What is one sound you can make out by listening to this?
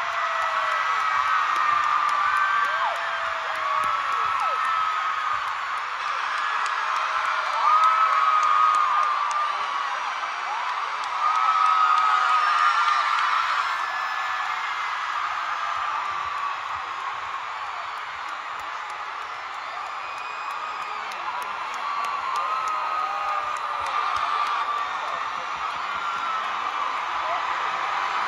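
A huge crowd screams and cheers loudly in a large echoing arena.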